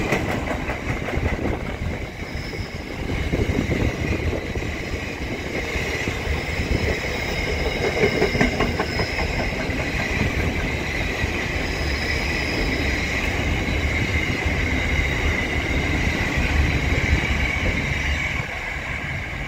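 Steel wheels squeal against the rails.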